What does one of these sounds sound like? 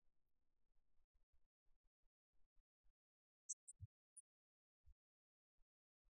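Rackets strike a shuttlecock back and forth.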